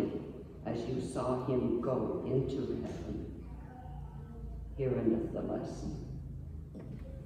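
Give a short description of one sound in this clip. An elderly woman reads aloud through a microphone in a large echoing hall.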